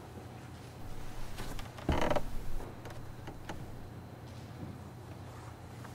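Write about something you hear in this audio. Hard-soled shoes step slowly on a wooden floor.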